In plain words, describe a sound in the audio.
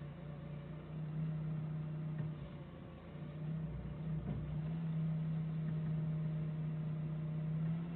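A forklift engine hums steadily up close.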